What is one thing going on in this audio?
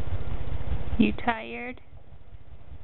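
A baby babbles and squeals briefly up close.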